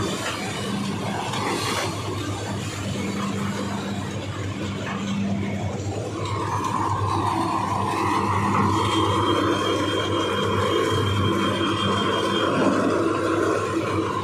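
Sugarcane stalks rustle and crash as they are dumped onto a conveyor.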